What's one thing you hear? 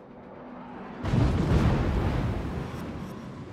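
Heavy naval guns fire with a deep, rumbling boom.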